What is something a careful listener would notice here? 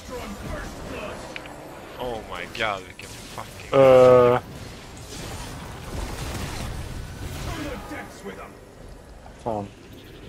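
Fantasy game spell effects whoosh and clash during a fight.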